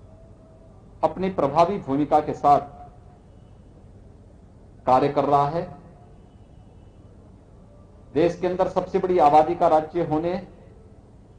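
A man speaks slowly into a microphone in short bursts with long pauses.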